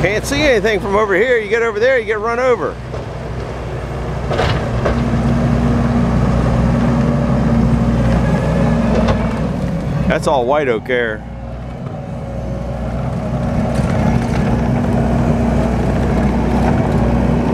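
A diesel engine of a tracked loader rumbles steadily nearby.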